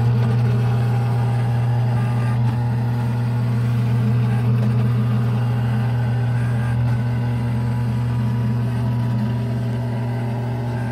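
Coins and chips clink and slide as the pusher moves.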